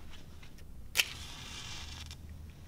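A match strikes and flares with a hiss.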